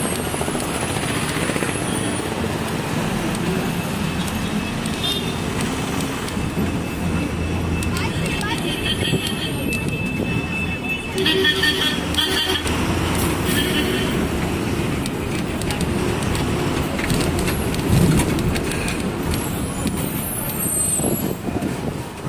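Traffic rumbles steadily outdoors on a busy street.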